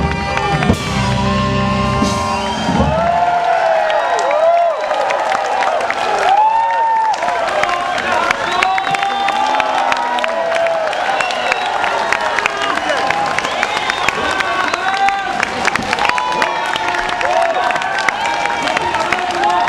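A brass and saxophone band plays lively music loudly outdoors.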